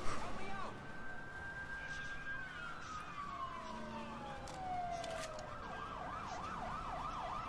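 A police siren wails close by.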